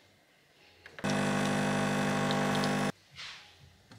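An espresso machine pumps with a steady hum.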